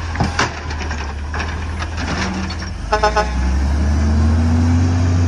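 A garbage truck's diesel engine rumbles steadily close by.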